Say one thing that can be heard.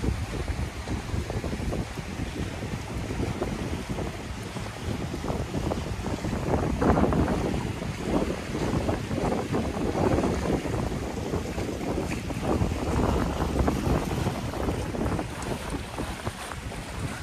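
Strong wind blusters into the microphone outdoors.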